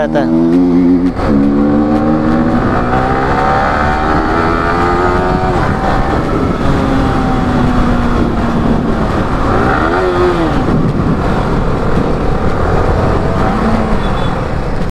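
Wind rushes past a moving rider outdoors.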